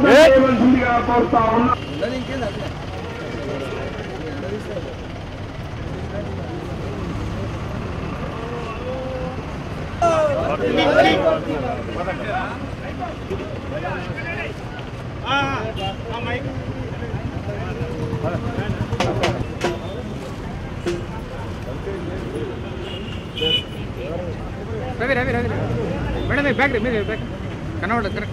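A crowd of men and women chatters nearby outdoors.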